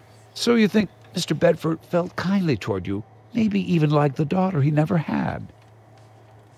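A middle-aged man speaks calmly and questioningly.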